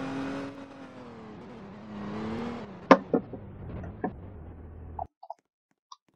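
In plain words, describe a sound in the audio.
A car engine hums and slows down.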